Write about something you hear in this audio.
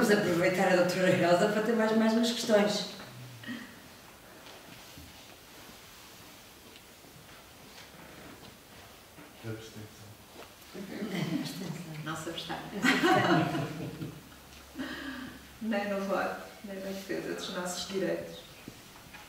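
A woman speaks calmly into a microphone, with pauses.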